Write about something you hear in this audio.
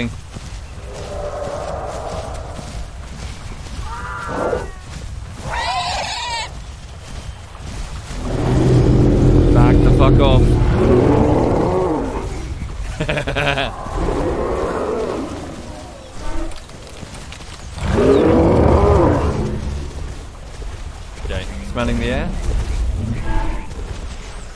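Large animals bellow and honk in deep, drawn-out calls.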